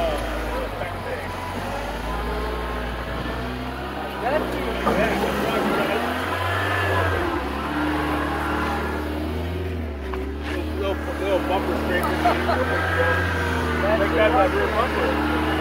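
A truck engine rumbles and revs as it crawls over rocks.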